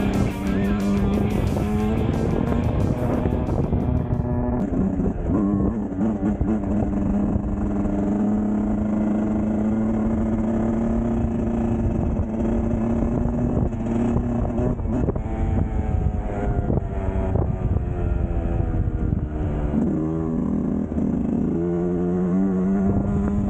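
A motorcycle engine drones close by, its pitch rising and falling with the throttle.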